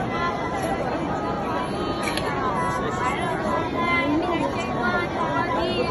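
A young boy recites loudly in a chanting voice close by.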